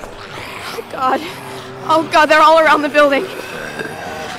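A young woman speaks in a frightened, trembling voice.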